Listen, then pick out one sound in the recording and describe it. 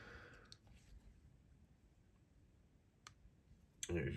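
A folding knife blade snaps open and clicks into place.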